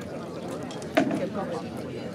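A sword strikes a wooden shield with a sharp crack.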